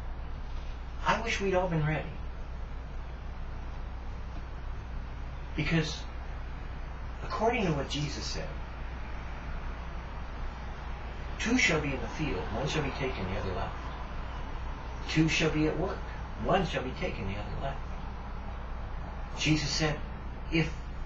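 An older man talks calmly in short bursts, close by.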